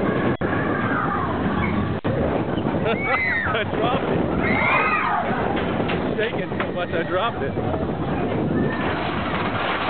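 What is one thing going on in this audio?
Young riders scream and shriek with excitement.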